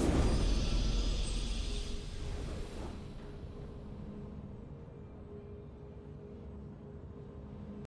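A triumphant game fanfare swells and slowly fades.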